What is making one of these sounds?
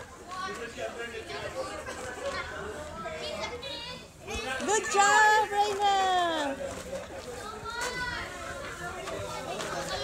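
Young girls chatter excitedly nearby.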